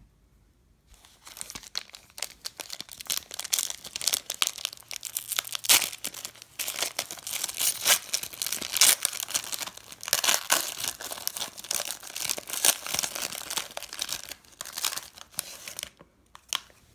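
A foil wrapper crinkles and rustles close by.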